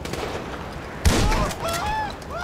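A gunshot fires sharply.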